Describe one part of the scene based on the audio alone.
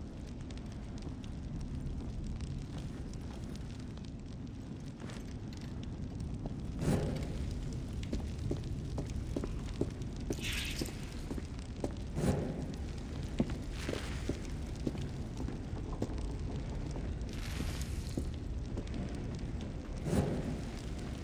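Footsteps tread on a stone floor.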